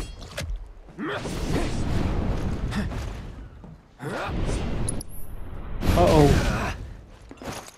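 A huge winged creature lets out a wavering shriek.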